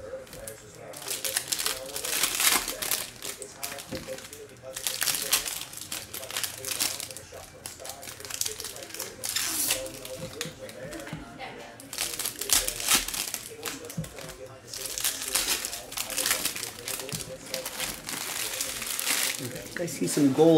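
Foil card packs crinkle and rustle as they are torn open.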